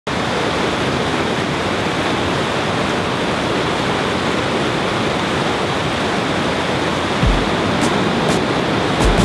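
White water rushes loudly over rocks in a river rapid.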